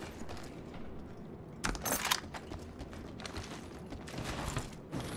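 Footsteps thud quickly on a metal floor.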